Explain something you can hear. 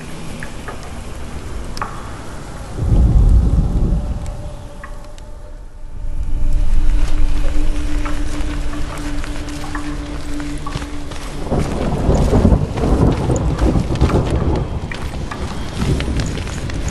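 Footsteps crunch softly on rough ground.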